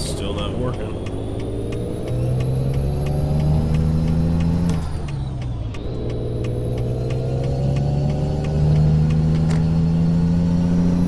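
A truck engine revs up, rising in pitch, then drops and climbs again.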